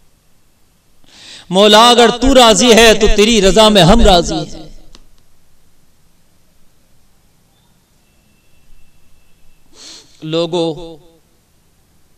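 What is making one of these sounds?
A young man preaches loudly and with passion into a microphone, heard through a loudspeaker in an echoing space.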